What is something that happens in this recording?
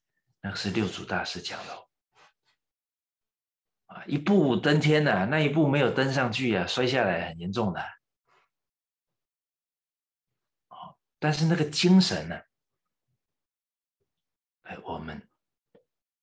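An older man speaks calmly into a microphone, in short bursts with pauses.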